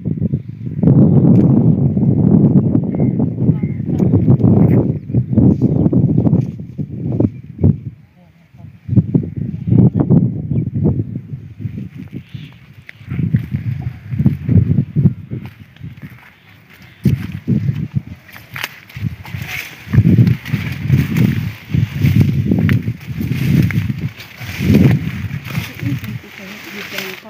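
Wind blows in strong gusts outdoors, rumbling loudly.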